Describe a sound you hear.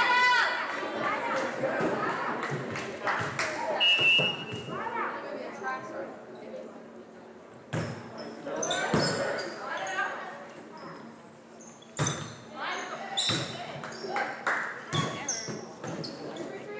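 A volleyball is struck with sharp slaps in a large echoing gym.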